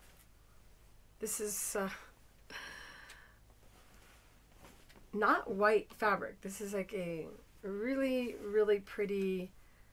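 Thin paper rustles and crinkles as it is lifted and folded.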